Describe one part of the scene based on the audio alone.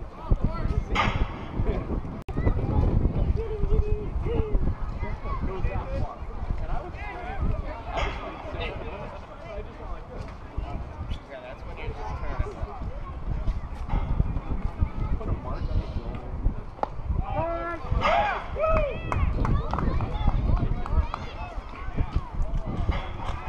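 Young players and adults shout and call out across an open field.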